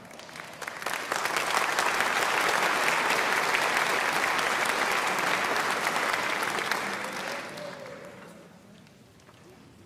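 An audience applauds loudly in a large hall, then the clapping fades away.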